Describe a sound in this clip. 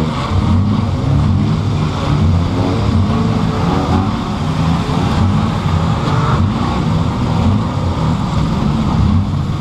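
Wind rushes past a moving car.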